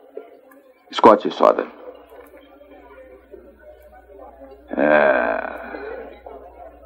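Another man answers with animation, close by.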